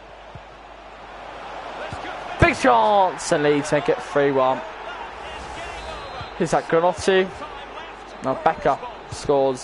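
A large crowd roars and cheers, swelling loudly.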